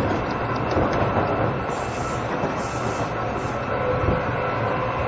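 A train hums steadily nearby.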